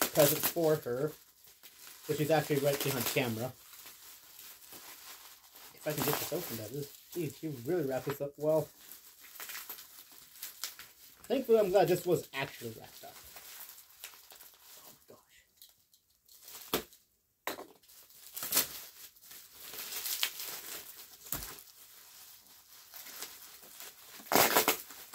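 Plastic wrap crinkles and rustles as it is pulled apart.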